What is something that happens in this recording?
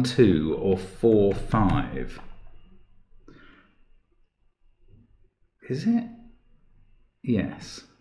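An elderly man speaks calmly and close into a microphone, with pauses.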